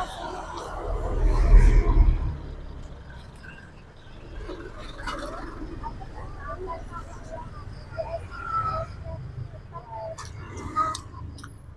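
A man chews and smacks his lips loudly.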